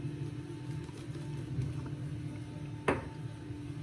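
A shaving brush swishes lather against stubble.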